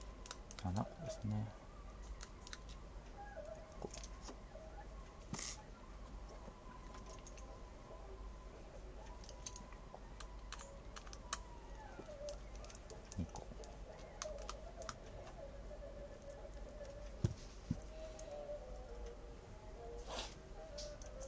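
Small metal parts click and tap as a phone is handled.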